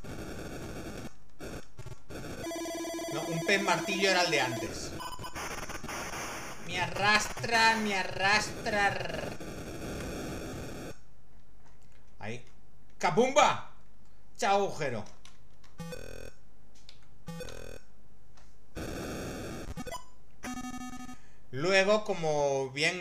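Electronic video game beeps and tones play.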